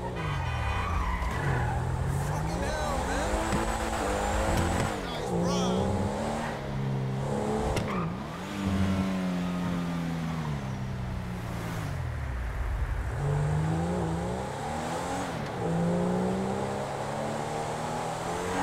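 A sports car engine revs up and down, rising and falling in pitch as it shifts gears.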